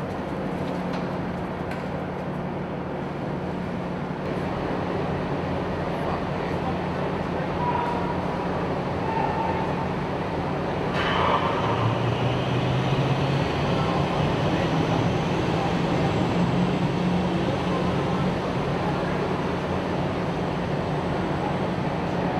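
Diesel engines of amphibious assault vehicles rumble, echoing in a large steel hall.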